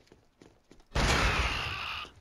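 Gunfire rattles in a loud, rapid burst.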